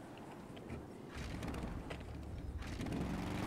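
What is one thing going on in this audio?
A motorbike engine starts and revs up.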